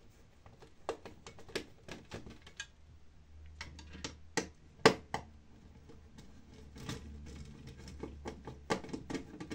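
Small plastic and metal parts click and tap as hands work on a device.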